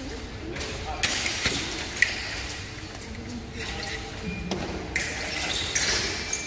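Fencing blades clash and scrape.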